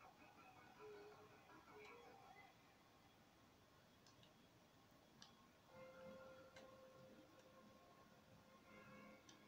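Music plays quietly from a television loudspeaker.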